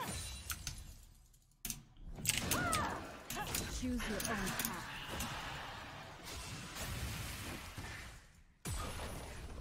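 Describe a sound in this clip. Fantasy spell effects whoosh and crackle during a fight in a video game.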